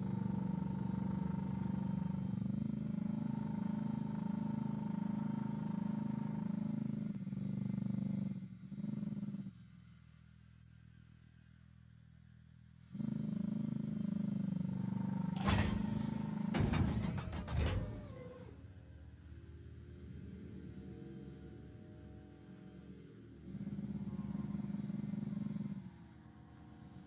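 A spaceship engine hums low and steadily, rising and dropping away at times.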